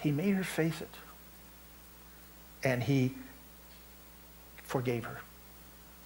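An elderly man speaks calmly in short phrases with pauses, heard through a microphone in a room.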